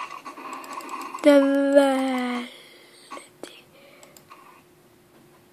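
A computer game plays popping and chiming sound effects through small speakers.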